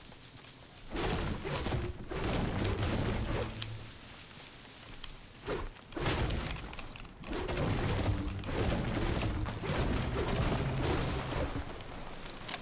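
A pickaxe chops repeatedly into a tree trunk.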